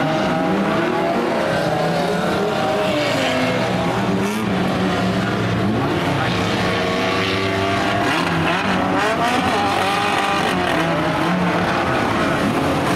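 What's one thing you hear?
Car engines roar and rev loudly.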